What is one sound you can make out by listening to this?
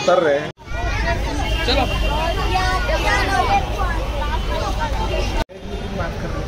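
A crowd of girls and children chatter excitedly outdoors.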